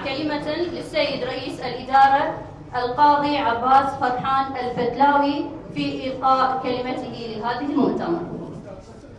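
A woman speaks steadily into a microphone, heard through loudspeakers.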